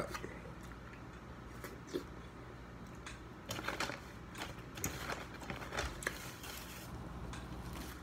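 A young man smacks his lips while eating.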